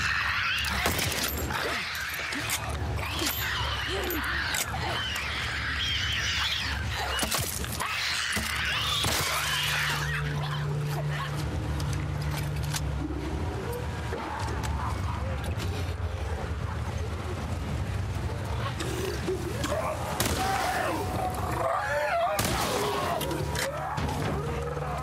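A monster snarls and screeches.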